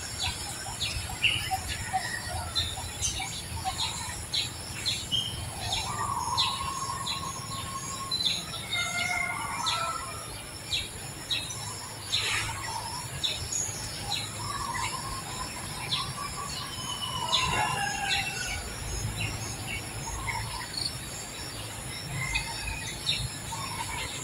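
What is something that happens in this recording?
A baby monkey squeaks softly up close.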